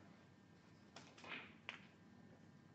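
Snooker balls click together on the table.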